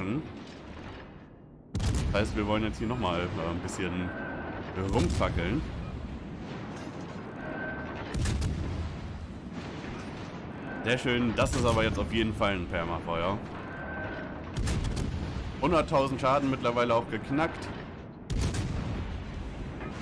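Shells explode and splash into water.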